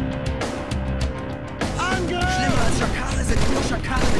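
A sniper rifle fires a single loud shot.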